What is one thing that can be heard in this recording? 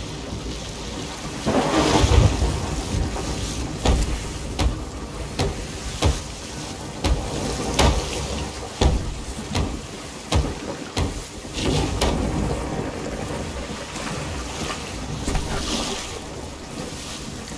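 Rain pours down steadily outdoors.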